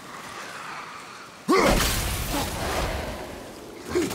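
A heavy axe whooshes through the air and strikes with a loud burst.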